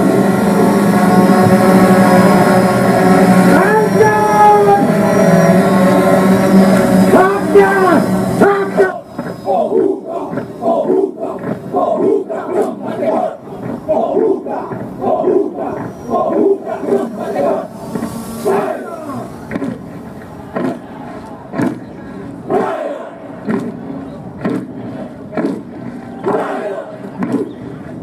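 A group of young women chant loudly in unison, shouting.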